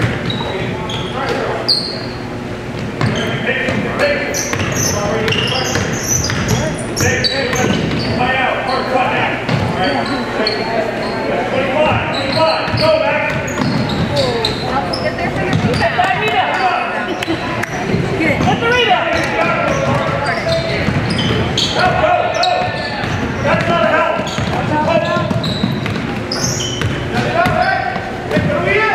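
Young players shout to each other in an echoing gym.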